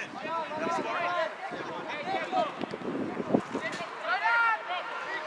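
Young players shout and call to each other across an open outdoor pitch.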